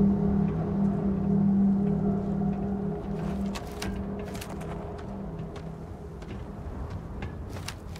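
Heavy boots clank in footsteps on a metal walkway.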